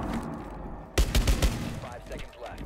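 A pistol fires several quick, sharp shots.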